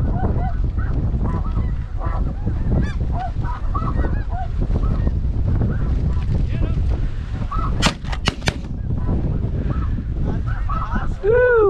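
A flock of snow geese calls overhead.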